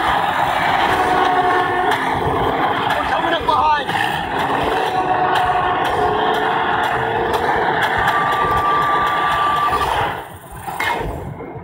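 An engine roars as a vehicle races over rough ground.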